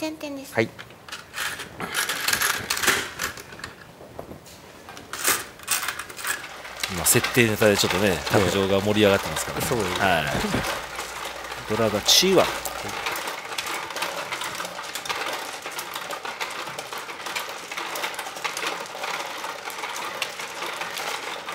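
Mahjong tiles click and clack on a table.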